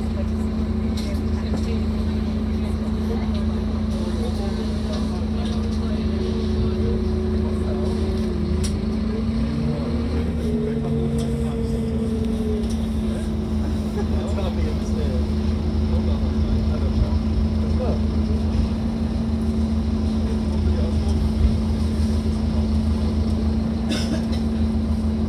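Seats and fittings rattle as the bus moves.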